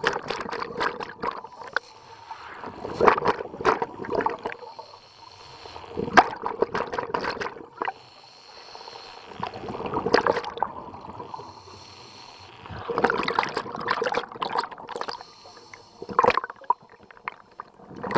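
A diver breathes in through a regulator with a loud underwater rasp.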